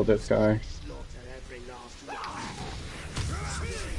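A body thuds heavily onto wooden planks.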